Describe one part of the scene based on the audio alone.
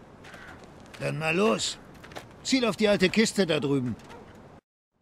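An older man speaks in a gruff voice close by.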